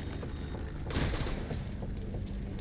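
An explosion booms with a sharp burst.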